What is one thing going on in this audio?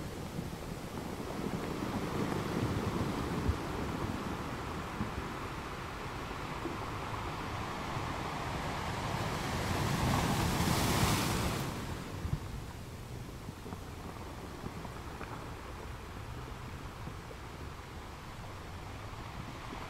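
Ocean waves roll in and crash onto rocks.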